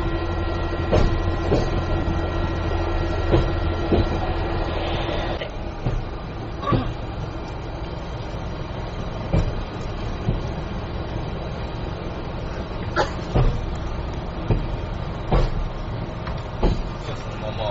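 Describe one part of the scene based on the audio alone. Wheels clatter and knock on rails.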